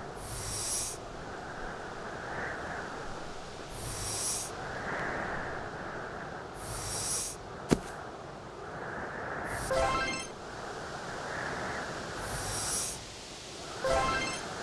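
A game character slides across ice with a repeated whooshing sound.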